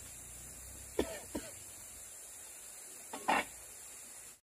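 An egg cracks against the rim of a metal pot.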